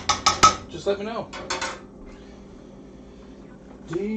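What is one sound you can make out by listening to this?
A spoon clatters onto a metal baking tray.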